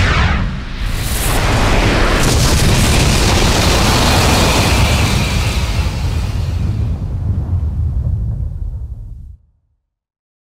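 A huge explosion roars and slowly fades away.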